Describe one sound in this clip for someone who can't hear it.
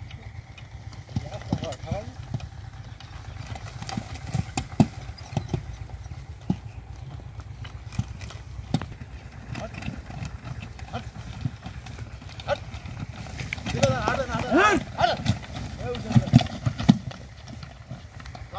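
Wooden cart wheels creak and rumble.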